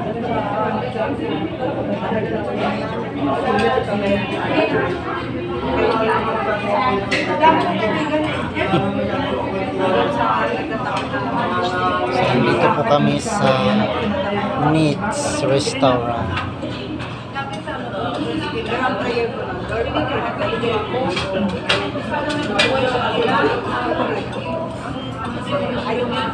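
Many people chatter in a busy, echoing room.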